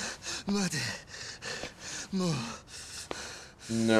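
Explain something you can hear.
A man pleads in a weak, frightened voice.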